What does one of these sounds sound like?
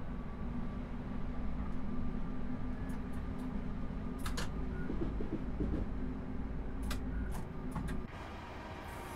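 A train engine rumbles low and steady from inside the cab.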